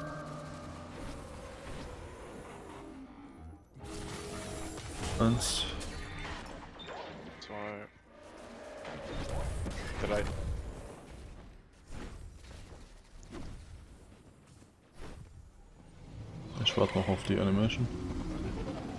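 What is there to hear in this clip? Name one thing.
Energy weapons fire with sharp zaps.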